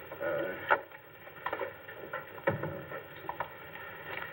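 Wheelchair wheels roll and creak across the floor.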